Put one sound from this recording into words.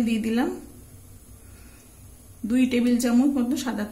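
Oil pours into a pan with a soft trickle.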